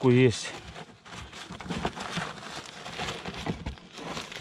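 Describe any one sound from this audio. A hand scrapes and rubs against roof tiles.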